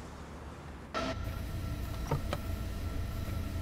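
An electric locomotive hums inside its cab.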